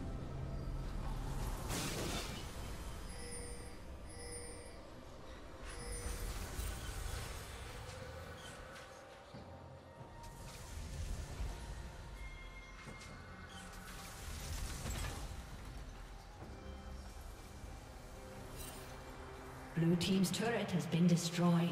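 Game sound effects of spells and weapon strikes clash and zap.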